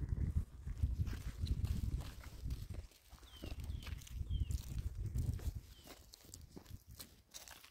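Footsteps crunch slowly on dry, stony ground.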